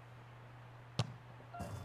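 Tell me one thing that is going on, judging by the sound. A football is kicked with a sharp thud.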